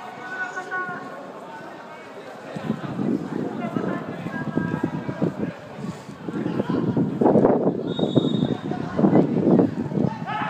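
Young players shout and call out to each other across an open pitch.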